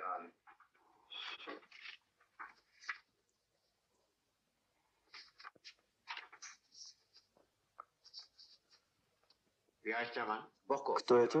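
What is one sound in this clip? Paper rustles as photographs are handled.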